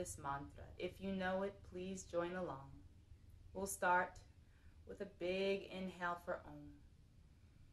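A young woman speaks calmly and softly close by.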